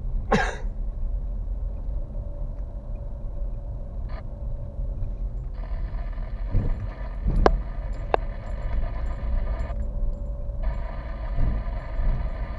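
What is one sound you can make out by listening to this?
Tyres roll and crunch over a rough dirt road.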